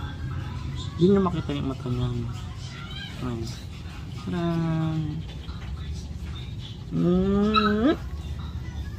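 A man talks close by in a soft, playful voice.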